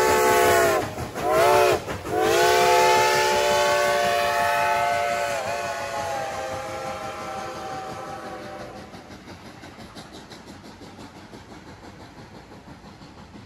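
A steam train rolls past with rhythmic clacking of wheels on the rails.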